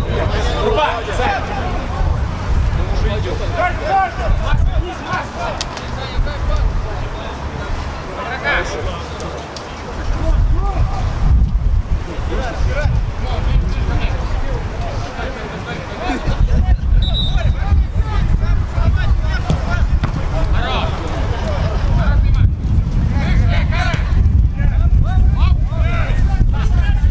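Football players shout to each other across a pitch.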